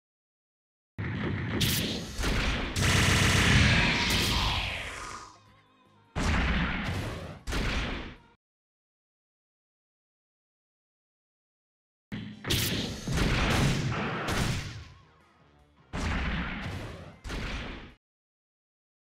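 Laser guns fire in quick, sharp blasts.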